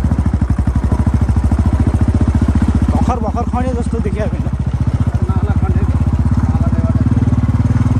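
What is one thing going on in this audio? A motorcycle engine chugs steadily at low speed.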